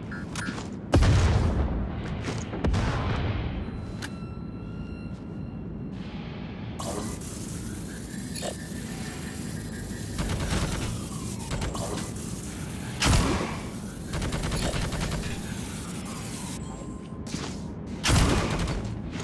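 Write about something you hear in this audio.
A rifle fires with a loud, booming shot.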